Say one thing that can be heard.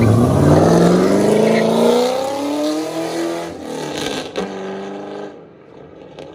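A sports car engine revs loudly, its pitch climbing as it pulls away.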